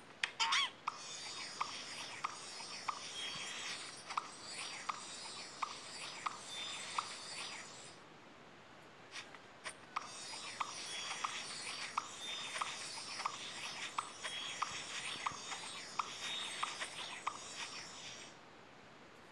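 Game music plays with a bright, bouncy beat.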